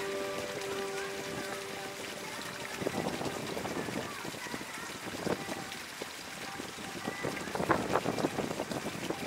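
Water gushes from a pipe and splashes into a tub.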